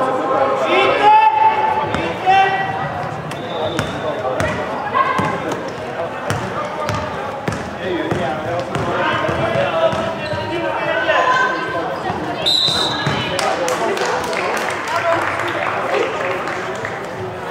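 Young women shout and call to each other across a large echoing gym.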